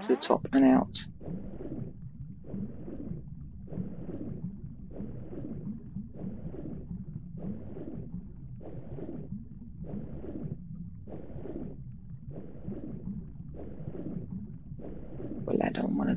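Muffled underwater strokes whoosh in a slow, steady rhythm.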